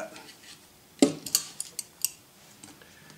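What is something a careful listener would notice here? Metal pliers clink and rattle as they are picked up.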